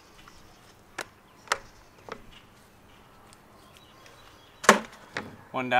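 Small objects knock on a wooden board.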